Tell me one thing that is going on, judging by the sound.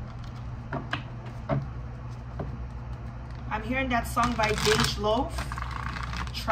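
Playing cards shuffle and flick against each other.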